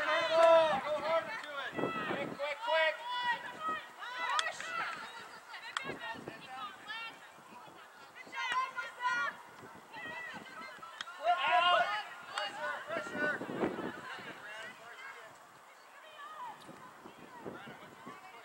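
Young women shout and call out across an open outdoor field.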